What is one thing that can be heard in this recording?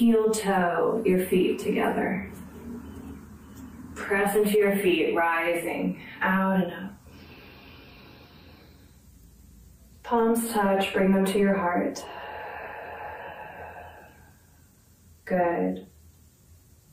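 A young woman speaks calmly and clearly into a nearby microphone.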